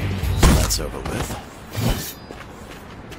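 Sharp hits and clashes of a fight ring out.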